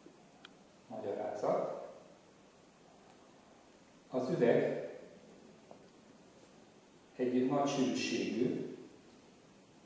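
An elderly man speaks in short bursts, close by.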